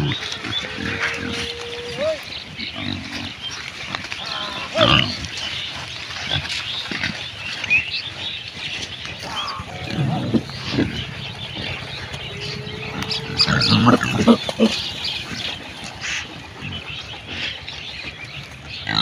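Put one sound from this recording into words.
Pigs grunt and snort nearby.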